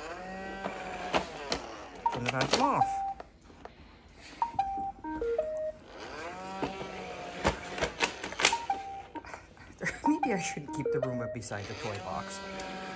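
A robot vacuum's motor whirs, rising and falling in pitch.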